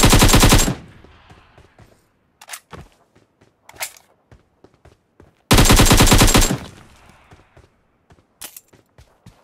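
Footsteps run across ground and stone steps.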